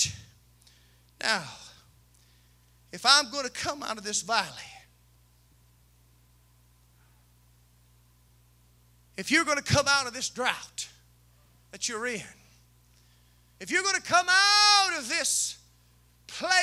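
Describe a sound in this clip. A man preaches through a microphone with loud, emphatic bursts and long pauses.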